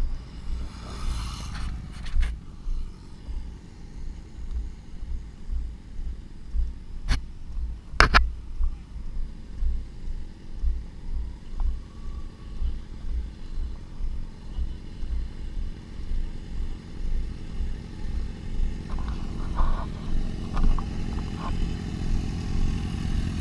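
Sport motorcycles cruise at speed on a highway.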